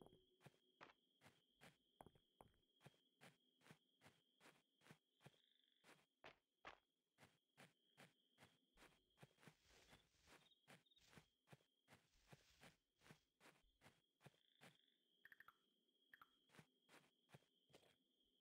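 Soft footsteps tread quickly and steadily on grass.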